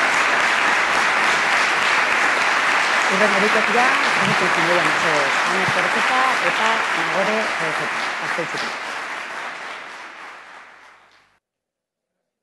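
An accordion plays a lively dance tune and fades out.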